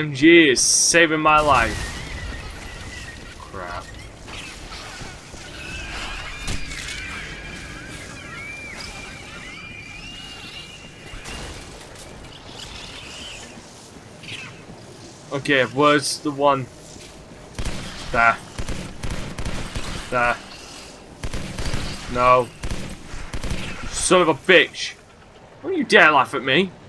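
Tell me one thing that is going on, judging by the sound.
A young man talks with animation, close up.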